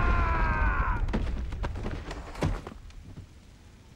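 A fire burns with a low roar.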